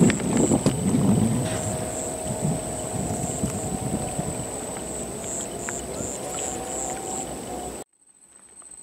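A firework fountain hisses and crackles loudly.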